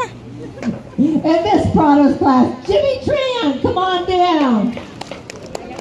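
Adults and children cheer and shout.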